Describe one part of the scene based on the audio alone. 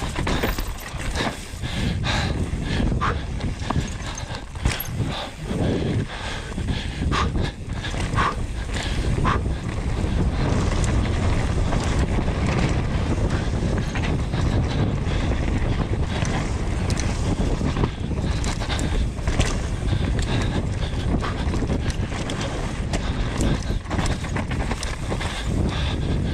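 A bike chain and frame rattle over bumps.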